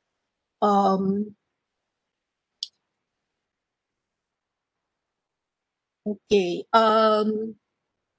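A middle-aged woman speaks calmly through an online call, in short bursts.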